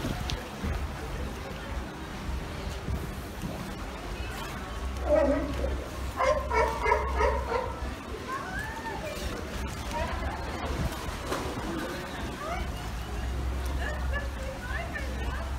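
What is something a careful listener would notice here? Water splashes softly as sea lions swim.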